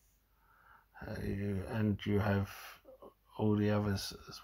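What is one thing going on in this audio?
A man speaks calmly and close up into a microphone.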